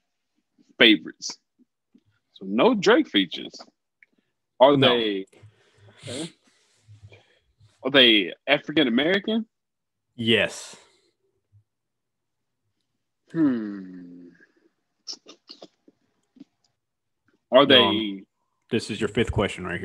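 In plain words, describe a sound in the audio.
A man talks calmly into a microphone over an online call.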